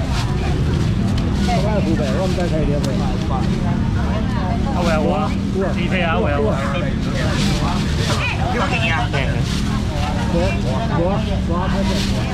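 Plastic baskets clatter on a table.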